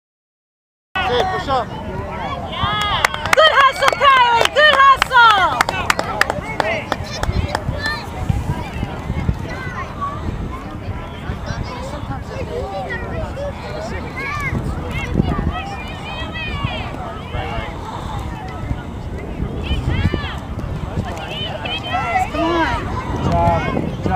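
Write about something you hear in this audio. Adult spectators nearby cheer and call out with animation.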